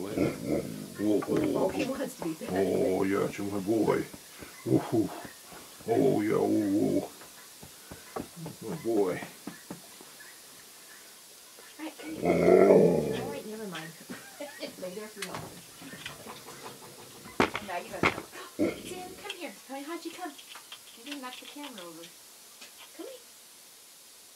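Metal parts click and clink as a man works on them by hand.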